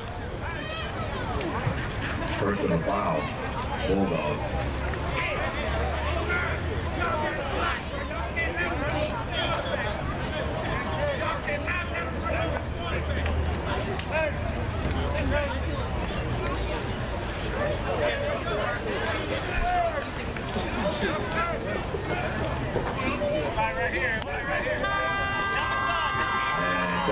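A crowd of adult spectators talks and cheers close by, outdoors.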